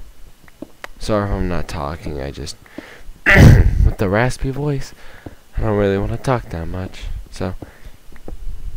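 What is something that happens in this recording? A young man speaks with animation through a headset microphone.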